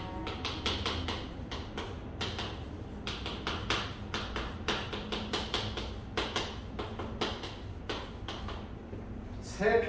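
Chalk taps and scratches quickly on a board.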